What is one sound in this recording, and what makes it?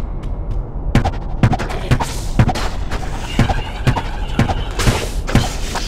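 Quick blows strike again and again in a fight.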